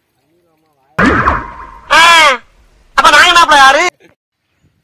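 A man calls out loudly to bullocks.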